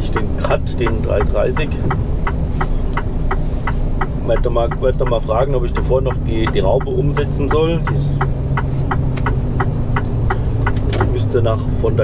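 Windscreen wipers sweep across the glass.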